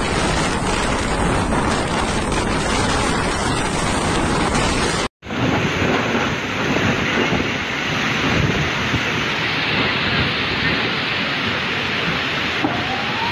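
Heavy rain pours down and lashes the ground.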